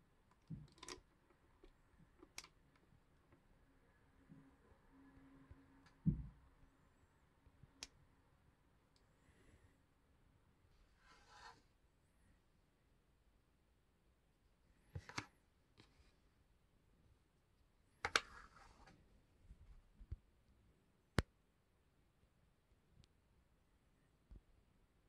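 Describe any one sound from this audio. Small plastic pieces click and knock.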